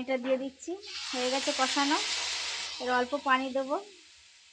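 Water pours into a hot pan and sizzles.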